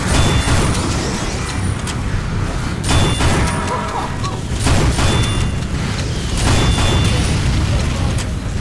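A grenade launcher fires with hollow thumps.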